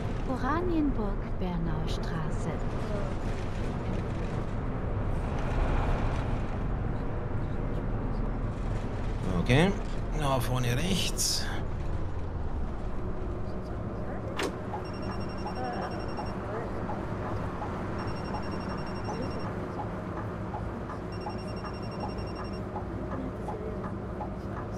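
A bus engine rumbles steadily.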